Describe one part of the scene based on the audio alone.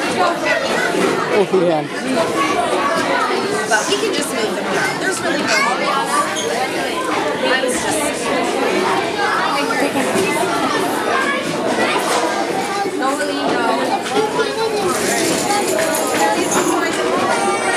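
Many young children chatter and shout excitedly in a large echoing room.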